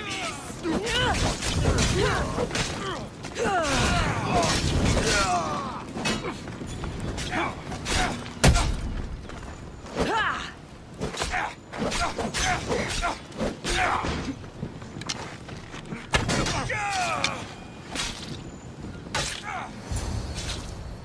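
Swords clash and thud in a close fight.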